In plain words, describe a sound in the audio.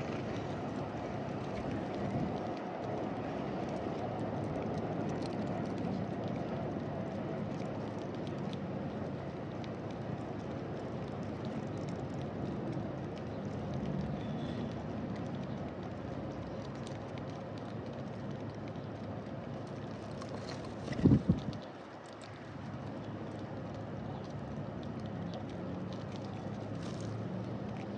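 Small birds peck at seed close by with light ticking sounds.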